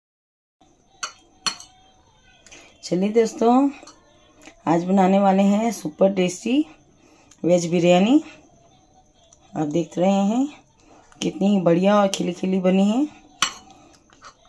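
A metal spoon clinks and scrapes against a plate.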